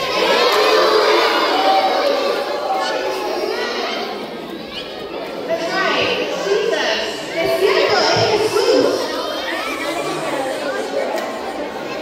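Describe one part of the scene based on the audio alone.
A crowd of children chatters and shouts loudly in a large echoing hall.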